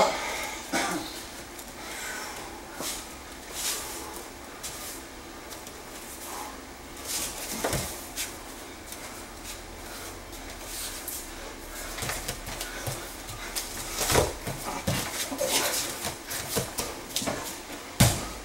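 Bare feet shuffle and scuff on a padded mat.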